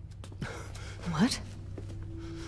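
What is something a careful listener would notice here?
A woman asks a short question.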